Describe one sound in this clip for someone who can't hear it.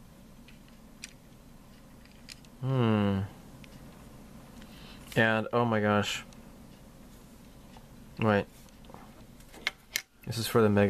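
Hard plastic parts click and tap softly as they are handled.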